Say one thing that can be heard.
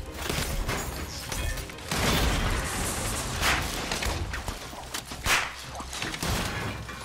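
Loud punches and crashes of a brawl thud rapidly.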